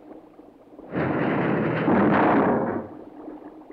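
A cartoon diver darts away with a quick whoosh.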